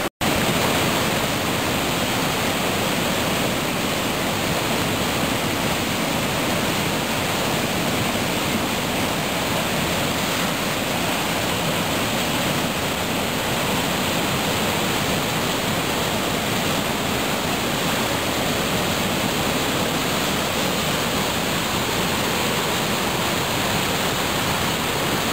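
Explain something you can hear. A flooded river rushes and roars loudly nearby.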